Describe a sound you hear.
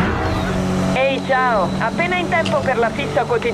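Tyres squeal on the road.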